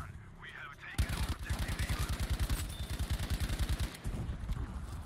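An automatic rifle fires in a rapid burst.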